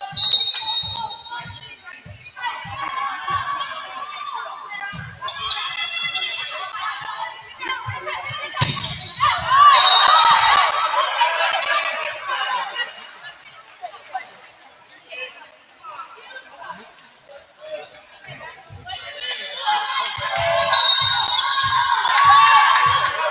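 A volleyball thumps as players hit it.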